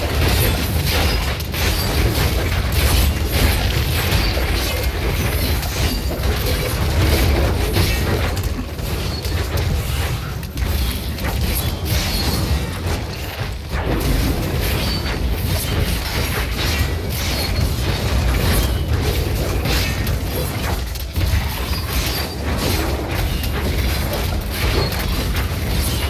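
Magic blasts and weapon hits crash and crackle in quick succession.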